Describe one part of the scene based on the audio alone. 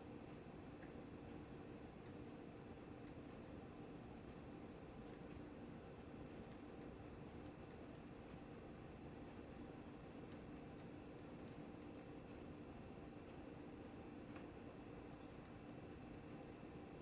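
A computer game plays a steady electronic hum with short clicking effects.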